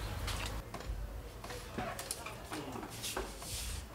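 A door opens.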